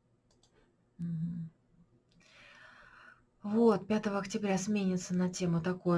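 A woman speaks with animation through an online call microphone.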